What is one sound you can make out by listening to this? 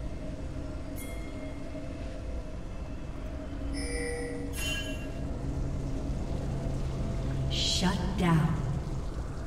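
A video game's alert chime sounds.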